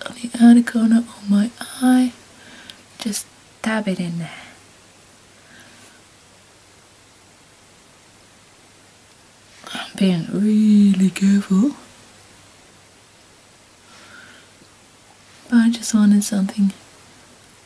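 A young woman talks calmly close by, in short bursts with pauses.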